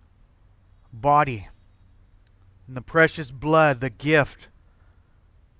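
A middle-aged man speaks calmly and slowly into a microphone.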